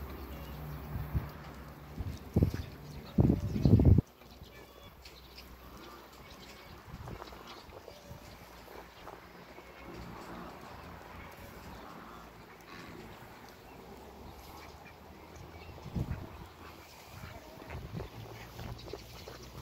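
A duck pecks and rummages softly in loose soil.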